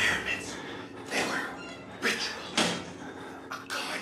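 A metal locker door bangs shut.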